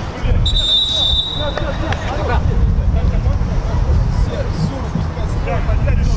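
Men shout and call out across an open outdoor pitch.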